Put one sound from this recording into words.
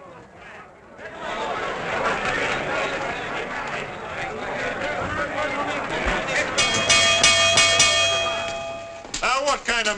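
A crowd of men and women chatter and laugh in a lively room.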